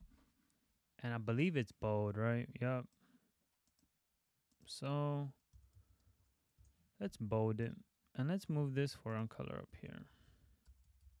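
A young man talks calmly and close to a microphone, in short bursts.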